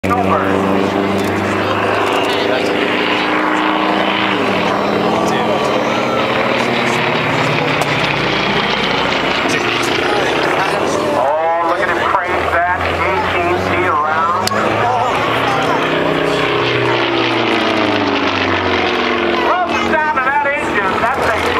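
A propeller plane's engine drones overhead, its pitch shifting as it passes.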